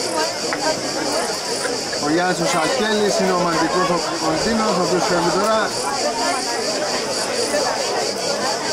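Football players shout to each other across an open pitch.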